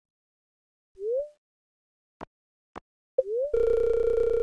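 A short rising menu chime sounds.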